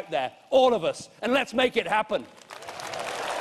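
A middle-aged man speaks loudly and forcefully into a microphone in a large hall.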